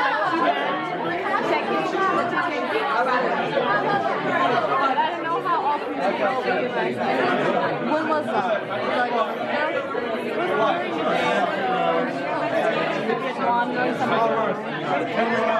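A crowd of young men and women chatter and laugh nearby in a busy room.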